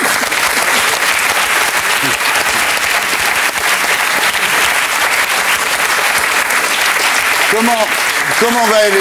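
A studio audience applauds loudly.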